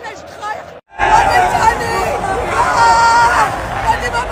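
A crowd of young men and women shouts and cheers loudly.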